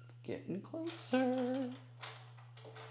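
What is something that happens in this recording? A sewing machine whirs briefly.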